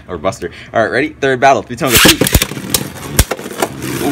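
A launcher cord rips as tops are launched.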